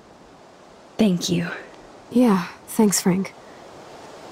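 A young woman speaks calmly and briefly.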